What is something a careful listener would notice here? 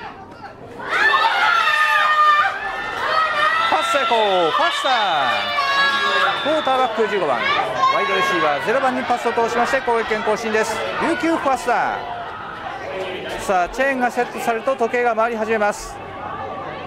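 Young men on the sideline cheer and shout loudly.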